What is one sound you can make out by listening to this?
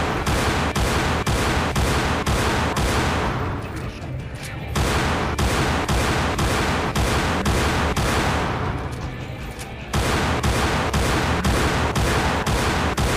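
A pistol fires shot after shot in a quick, steady rhythm.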